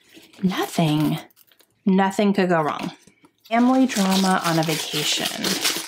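A woman speaks calmly close to a microphone.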